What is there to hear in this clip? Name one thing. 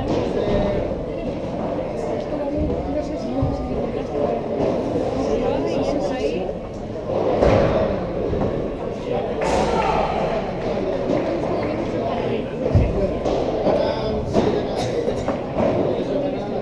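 A ball bounces on the court floor.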